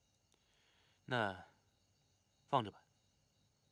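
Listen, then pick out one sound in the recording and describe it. A young man answers briefly in a low voice.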